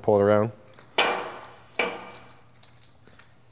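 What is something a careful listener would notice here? A bar thuds against the floor twice, ringing in the hall.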